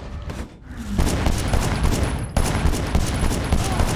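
Gunshots ring out in rapid bursts.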